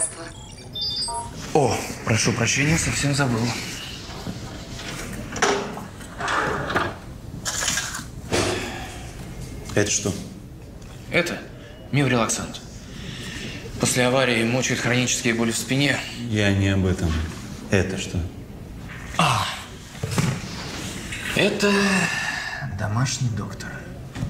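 A young man speaks calmly and explains, close by.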